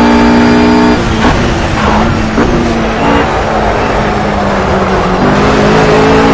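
A GT3 racing car engine blips and drops as it shifts down under braking.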